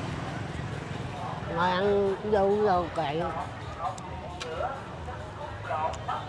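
A motorbike passes by on the street.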